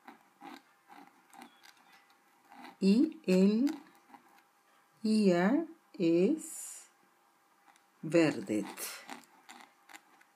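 A pen nib scratches softly on paper.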